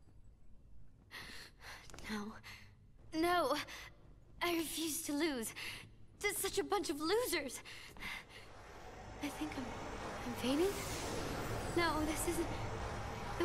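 A young woman speaks angrily and with strain.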